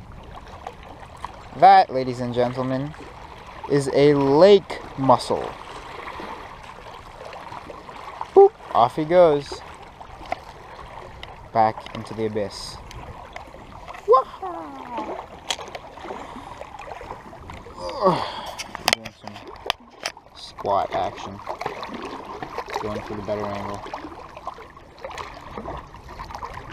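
Small waves lap against rocks close by.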